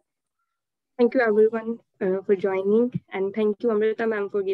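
A young woman speaks calmly through an online call.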